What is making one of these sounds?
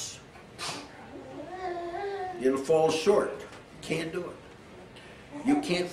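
An elderly man preaches forcefully, close by.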